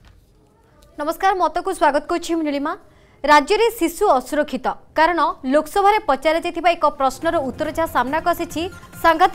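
A young woman speaks clearly and steadily into a microphone, reading out.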